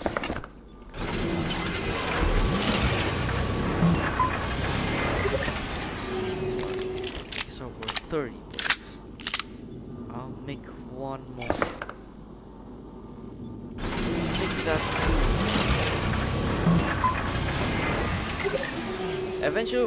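A machine whirs and clatters loudly as it builds something.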